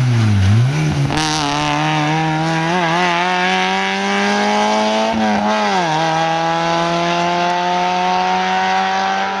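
A rally car engine revs high as it speeds away.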